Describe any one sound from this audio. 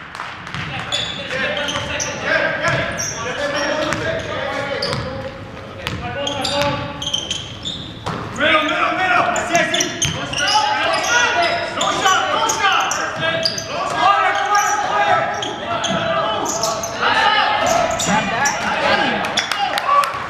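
Spectators nearby talk and cheer, echoing in a large hall.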